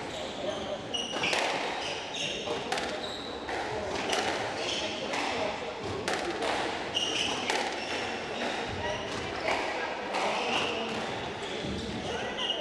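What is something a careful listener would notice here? Sneakers squeak briefly on a wooden court floor.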